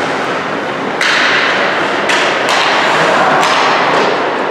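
Hockey sticks clack against the puck and the ice.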